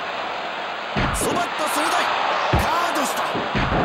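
Heavy blows land with sharp slaps and thuds.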